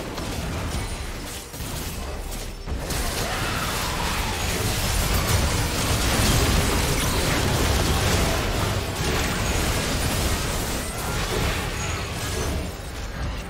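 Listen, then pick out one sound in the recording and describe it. Spell effects crackle, whoosh and burst during a video game battle.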